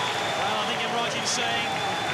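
A crowd claps their hands.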